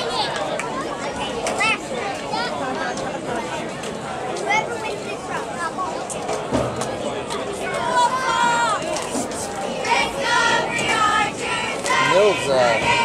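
A crowd of young men chatters and calls out all at once outdoors.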